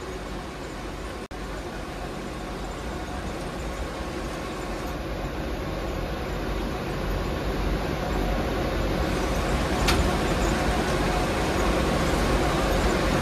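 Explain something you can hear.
Heavy rain pours and drums on a vehicle's windscreen.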